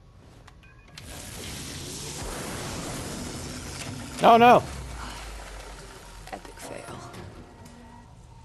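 Harsh electronic static hisses from a malfunctioning laptop.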